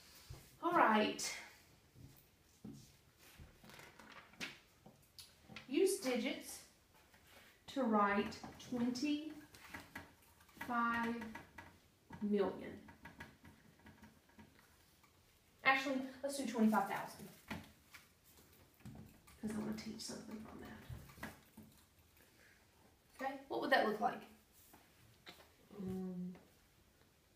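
A young woman speaks calmly close by, in short phrases with pauses.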